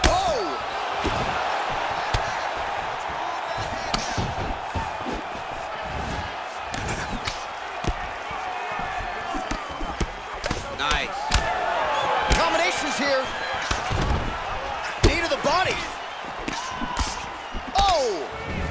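Punches thud and smack against bodies.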